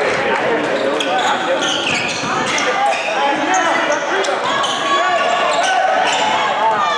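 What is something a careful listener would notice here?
A crowd of spectators chatters and calls out in the distance.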